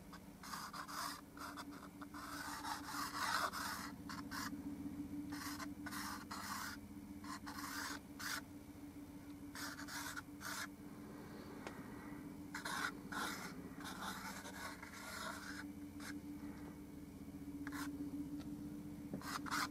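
A pencil scratches in short strokes across a canvas, close by.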